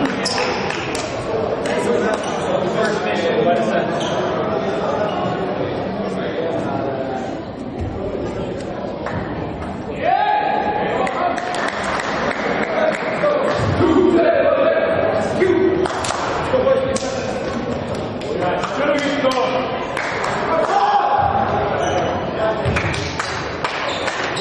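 Young men talk and shout together in a large echoing hall.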